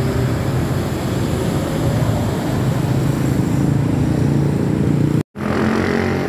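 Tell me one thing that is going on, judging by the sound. A bus engine rumbles nearby.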